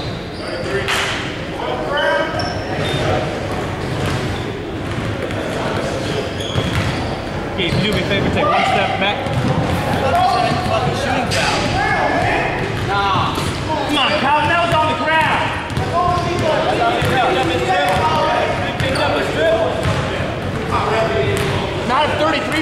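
Young men talk and call out across an echoing gym.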